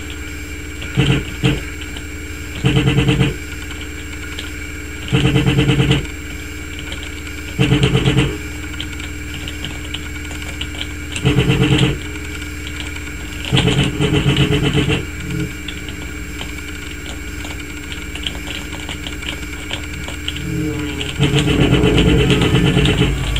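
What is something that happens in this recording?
Machine guns fire in short bursts through a loudspeaker.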